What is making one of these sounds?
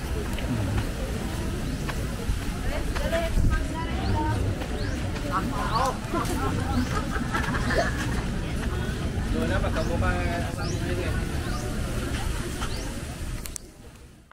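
A crowd of men and women chatters and talks outdoors.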